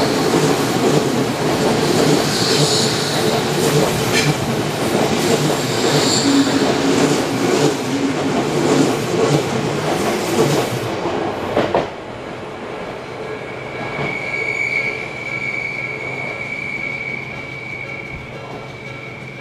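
Train wheels rumble steadily on the rails.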